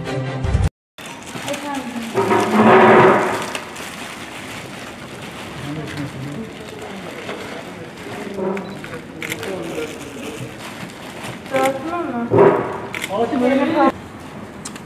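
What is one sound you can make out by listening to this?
Plastic wrappers rustle and crinkle as hands pack them into boxes.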